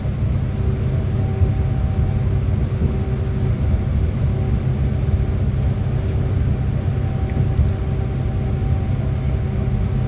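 Tyres roar on the road through a tunnel.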